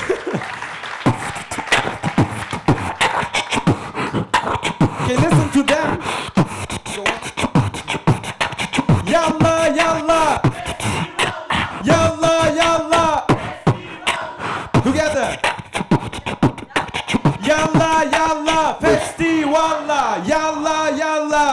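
A young man beatboxes into a microphone through loudspeakers, with sharp rhythmic clicks and thumps.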